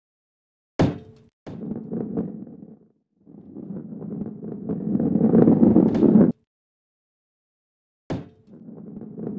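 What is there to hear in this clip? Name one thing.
A heavy ball rolls and rumbles over a wooden track.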